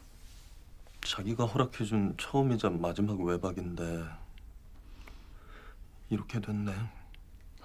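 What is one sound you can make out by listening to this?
A middle-aged man speaks nearby calmly.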